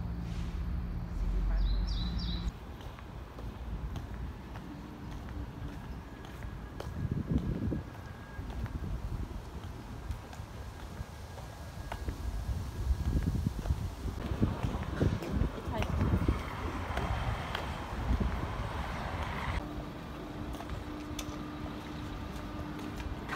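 Traffic hums along a nearby street outdoors.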